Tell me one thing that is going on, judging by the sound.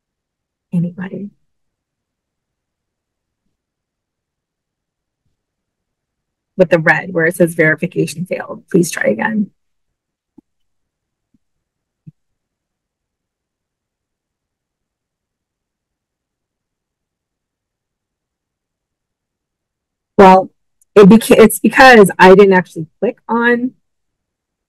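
A woman talks calmly into a microphone, pausing between phrases.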